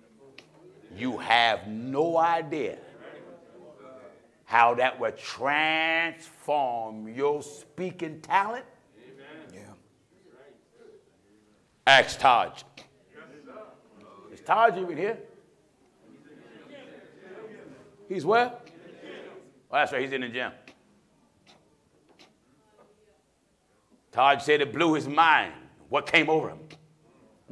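A middle-aged man preaches forcefully through a microphone in a large echoing hall, in bursts with pauses.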